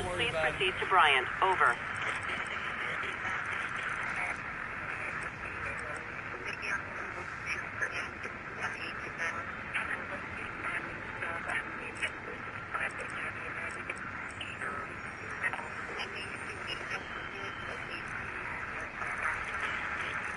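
Radio static crackles and hisses steadily.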